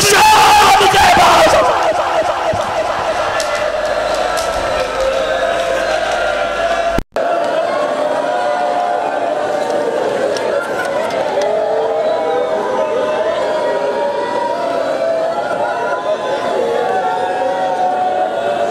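A crowd of men chants loudly in mourning.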